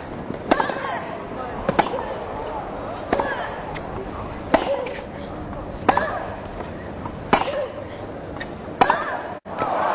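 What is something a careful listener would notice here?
Tennis balls are struck back and forth with sharp pops.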